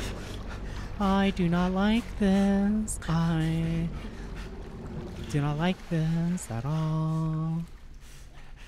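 A young woman speaks with animation into a close microphone, her voice rising and wavering.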